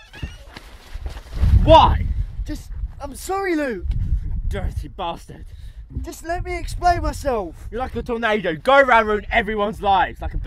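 Another young man shouts angrily up close.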